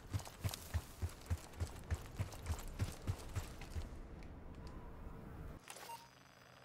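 Footsteps crunch steadily on loose gravel.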